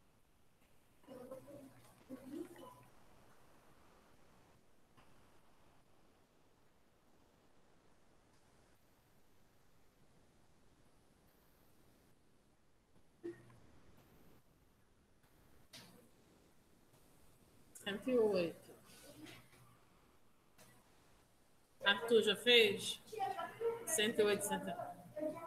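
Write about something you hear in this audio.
A woman speaks calmly through a microphone on an online call, pausing now and then.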